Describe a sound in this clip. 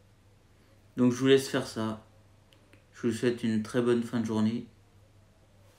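A young man speaks close to the microphone with animation.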